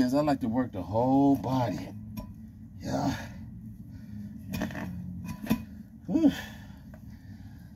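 Metal weight plates clank.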